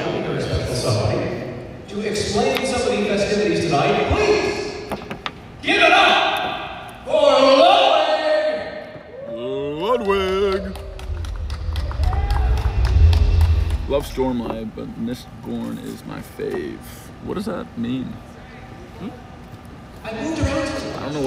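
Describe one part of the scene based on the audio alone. A man announces loudly over loudspeakers in a large echoing hall.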